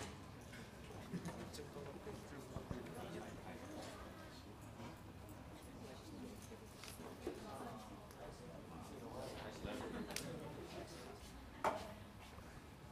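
A crowd of people chatter nearby.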